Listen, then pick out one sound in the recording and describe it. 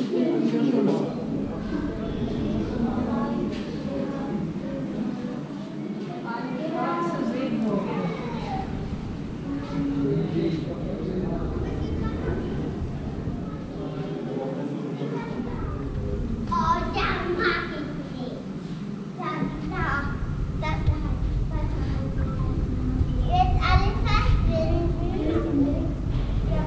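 Men and women talk quietly nearby in a large echoing hall.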